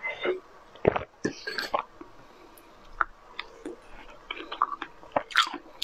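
A young woman chews and smacks her lips up close.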